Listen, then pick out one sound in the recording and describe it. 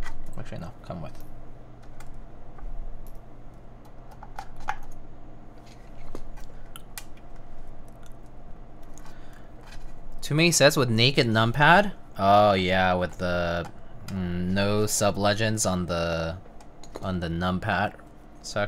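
Keys clack as fingers type on a mechanical keyboard.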